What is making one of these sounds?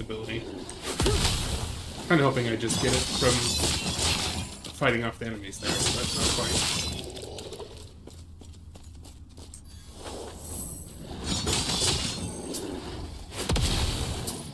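Spells and fiery blasts crackle and boom in a game.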